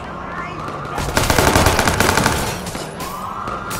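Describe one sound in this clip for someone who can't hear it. A car crashes with a loud smash of metal and glass.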